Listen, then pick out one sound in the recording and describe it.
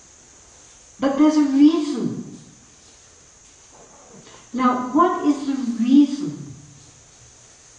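An elderly woman speaks calmly into a microphone, in short phrases with pauses.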